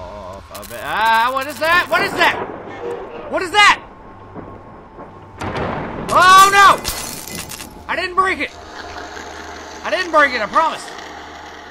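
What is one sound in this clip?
A man shouts and screams loudly into a close microphone.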